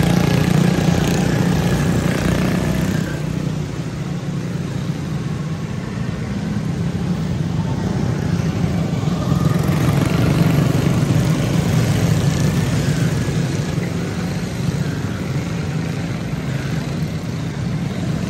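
Kart engines drone steadily in the distance outdoors.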